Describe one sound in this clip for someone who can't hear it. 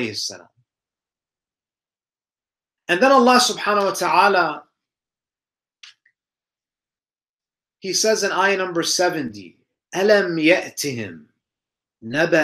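A young man recites in a calm, melodic voice, close to a microphone, with pauses between phrases.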